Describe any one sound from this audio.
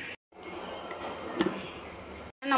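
A plastic lid snaps onto a container.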